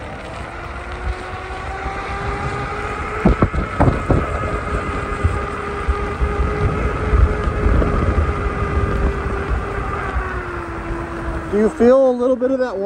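An electric unicycle's motor whines steadily as it rolls along.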